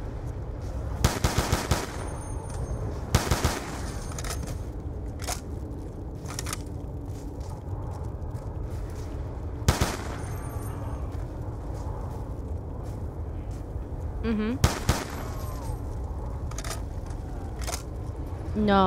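Gunshots fire in quick bursts, loud and close.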